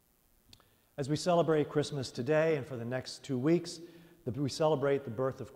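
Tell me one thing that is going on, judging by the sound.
A man sings through a microphone in a large echoing hall.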